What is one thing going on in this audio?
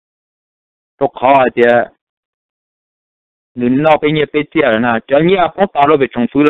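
A middle-aged man speaks calmly and close to a microphone.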